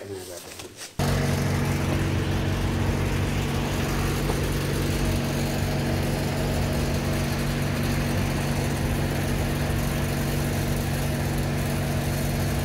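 An air compressor hums steadily as it pumps up a tyre.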